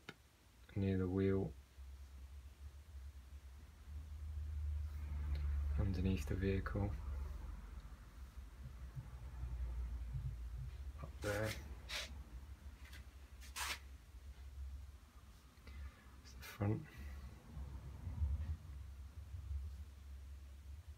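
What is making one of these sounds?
A brush dabs and strokes softly on paper.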